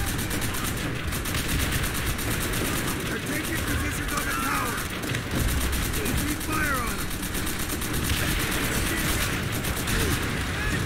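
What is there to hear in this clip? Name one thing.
A heavy machine gun fires long, rapid bursts close by.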